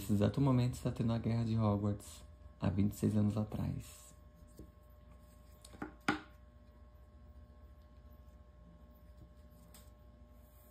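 Fingers rub and tap softly against a clay figure.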